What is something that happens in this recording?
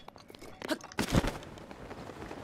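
A glider snaps open with a flutter of cloth.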